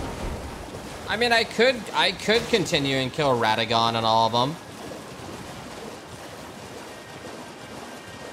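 A horse gallops and splashes through shallow water.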